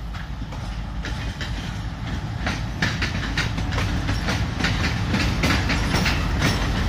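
Train wheels clatter over rail joints as the train passes close by.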